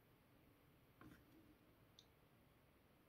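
Fingers tap and handle a small coin.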